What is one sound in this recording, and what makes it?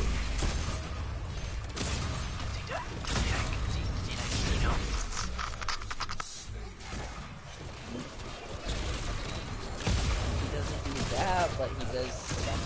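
Gunfire and explosions crackle and boom in quick bursts.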